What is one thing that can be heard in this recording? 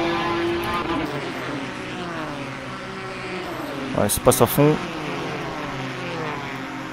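A racing car engine roars and revs up and down as it speeds along.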